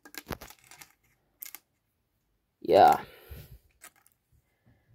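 Small plastic bricks click and rattle as they are handled.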